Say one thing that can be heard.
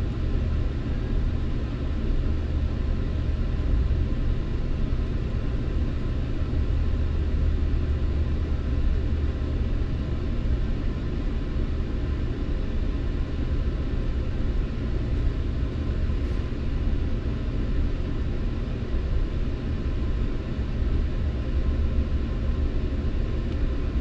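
A train rumbles steadily along the track, heard from inside a carriage.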